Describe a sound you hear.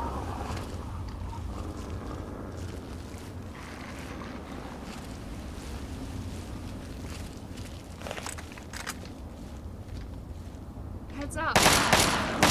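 Wind blows with a steady low rumble outdoors.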